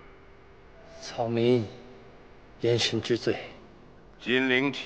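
An elderly man answers in a low, humble voice.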